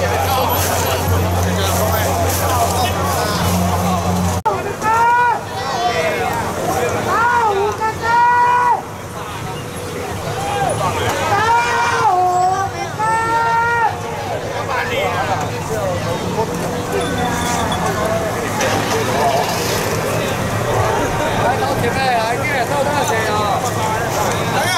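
A crowd of men and women chatter and call out outdoors.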